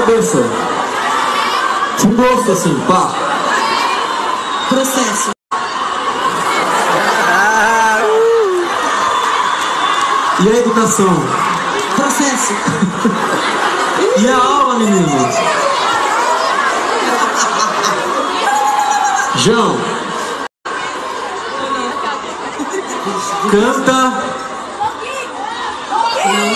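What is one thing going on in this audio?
A large crowd sings along and cheers loudly outdoors.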